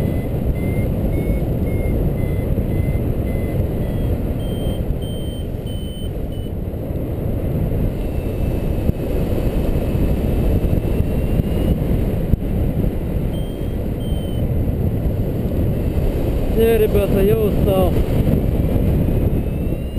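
Strong wind rushes and buffets steadily, as if high in the open air.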